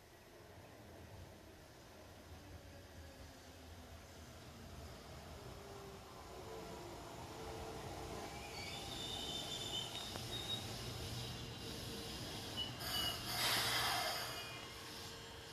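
An electric train rolls into a station, slowly growing louder.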